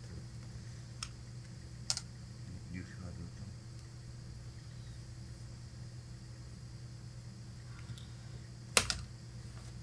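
A wooden ruler knocks against a table.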